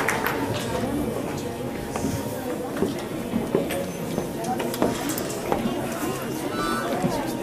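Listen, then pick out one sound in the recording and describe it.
Objects knock and thud as equipment is moved about.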